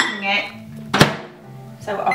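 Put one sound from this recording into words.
A microwave door shuts with a thump.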